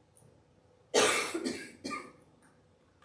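A woman coughs into her hand nearby.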